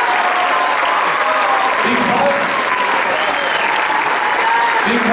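Many people clap their hands.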